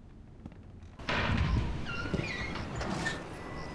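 A wooden door creaks open and shuts.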